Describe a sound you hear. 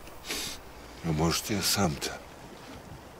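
An elderly man speaks in a low, gravelly voice, close by.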